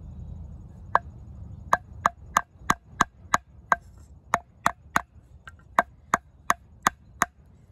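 A knife blade is tapped sharply against wood in a quick, steady series of clicks.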